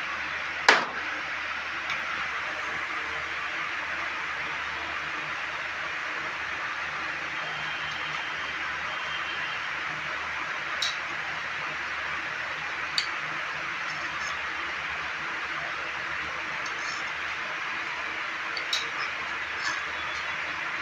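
Metal tool parts click and clack against each other.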